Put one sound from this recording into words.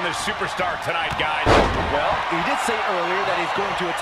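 A wrestler slams an opponent onto the mat with a heavy thud.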